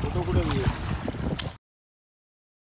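Shallow water splashes around a wading toddler's feet.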